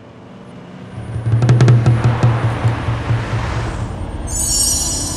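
A car drives past on a street.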